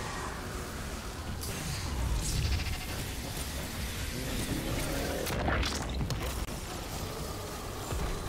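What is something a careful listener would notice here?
Gunshots fire in bursts.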